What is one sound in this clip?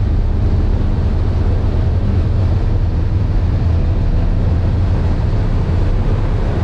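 Road noise and wind rumble inside a car cabin.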